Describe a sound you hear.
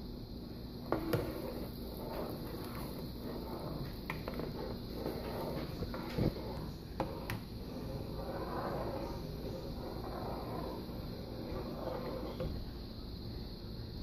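A spoon stirs and clinks against a metal pot.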